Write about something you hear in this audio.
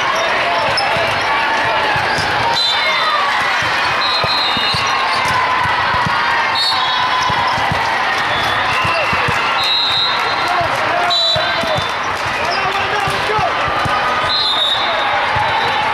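Many voices of players and spectators chatter and call out in a large echoing hall.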